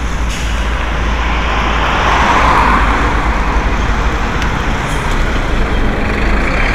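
A truck engine hums as the truck drives past close by.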